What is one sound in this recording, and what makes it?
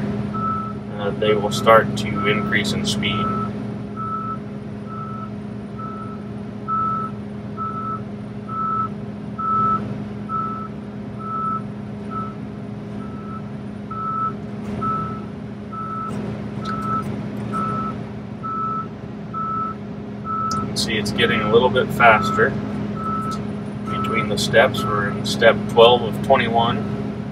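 An electronic alarm beeps over and over at an even pace.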